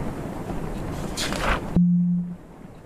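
A paper page turns with a quick rustle.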